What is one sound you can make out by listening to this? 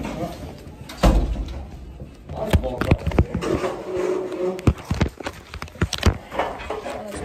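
Handling knocks and bumps sound close to the microphone.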